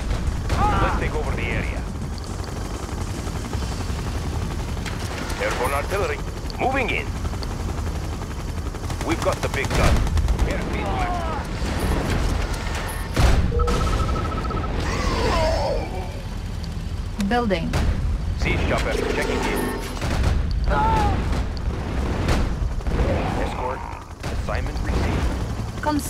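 Tank engines rumble and clank steadily.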